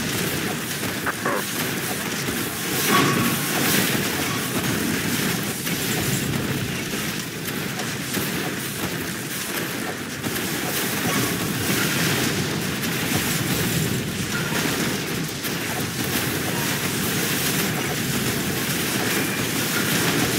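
Gunfire and explosions rattle and boom in a continuous battle.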